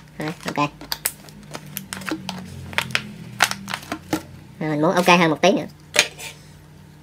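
A plastic bottle cap creaks and clicks as it is twisted off.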